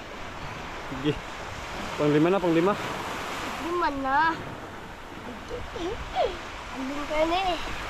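A young boy talks in short bursts nearby.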